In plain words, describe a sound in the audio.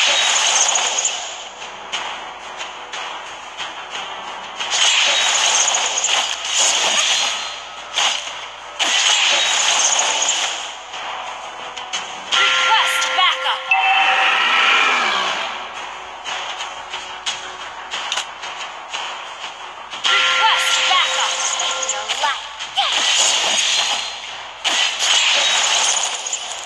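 Game sword slashes and hit effects clash in quick bursts.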